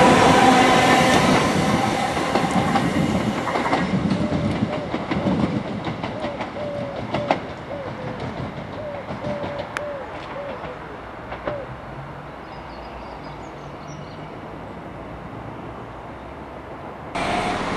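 An electric train rushes past close by and fades into the distance.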